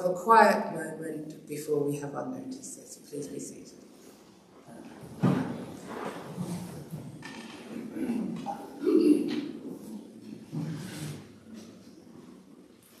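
A woman speaks into a microphone in an echoing hall.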